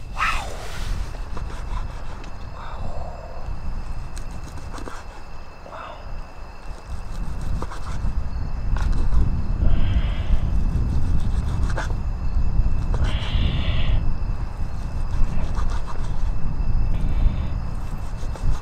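A knife slices through meat and taps on a wooden board.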